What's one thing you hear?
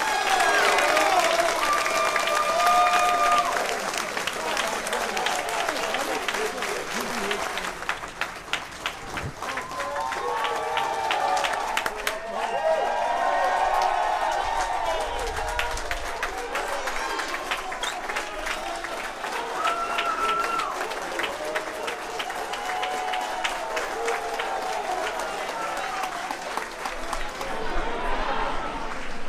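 A crowd applauds warmly.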